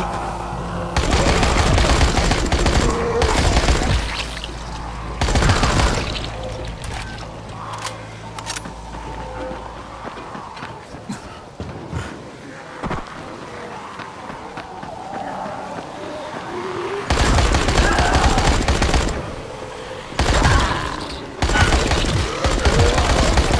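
A rifle fires loud, rapid bursts of shots.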